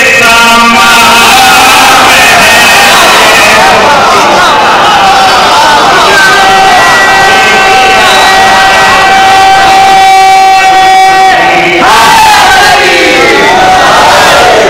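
A crowd of men chants along together in an echoing hall.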